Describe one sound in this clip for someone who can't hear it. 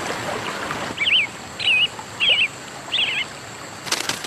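A small bird chirps several times close by.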